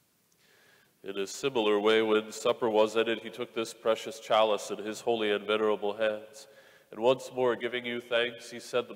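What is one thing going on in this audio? A man chants in a steady, sung voice through a microphone, echoing in a large hall.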